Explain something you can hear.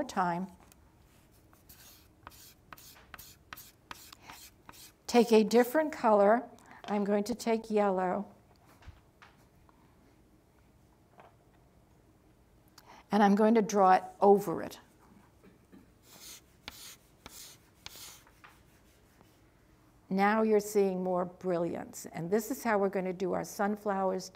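An elderly woman speaks calmly and clearly into a close microphone, pausing often.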